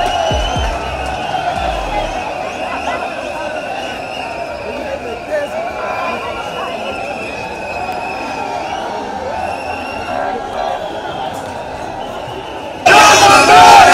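A large crowd of people shouts and chants outdoors.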